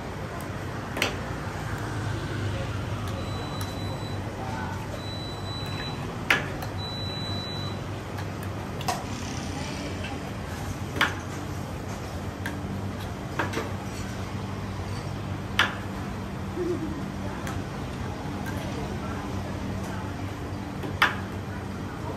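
A metal ladle clinks and scrapes against a pot.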